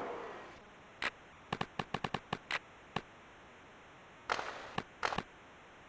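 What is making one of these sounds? Sharp electronic clicks of sticks hitting a puck come in quick bursts.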